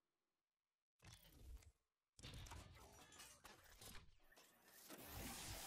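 A mechanical robot clanks and whirs as it unfolds.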